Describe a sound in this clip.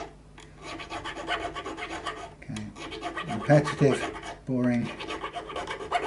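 A small metal tool scrapes and clicks along guitar frets.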